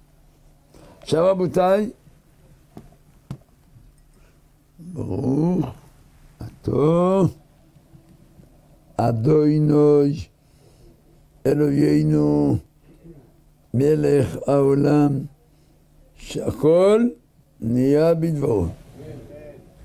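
An elderly man chants in a slow, sung voice close to a microphone.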